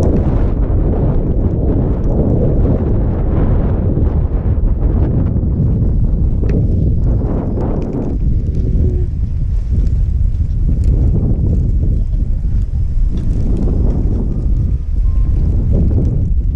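Wind buffets loudly against a microphone outdoors.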